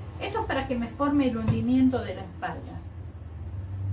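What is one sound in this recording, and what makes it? A plastic bottle is set down on a table with a knock.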